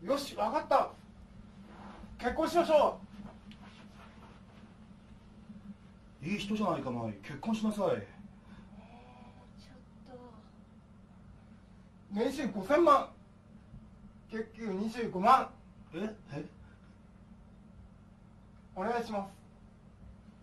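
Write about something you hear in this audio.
A man speaks with animation nearby, in short bursts.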